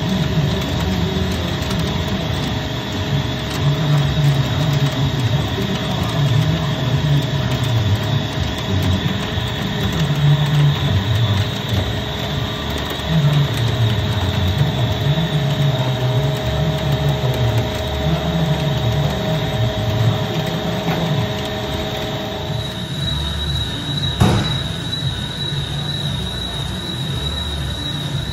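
Coolant sprays and hisses over the spinning steel shaft.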